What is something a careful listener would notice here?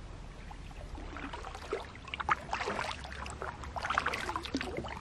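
Water laps against a canoe hull as it glides.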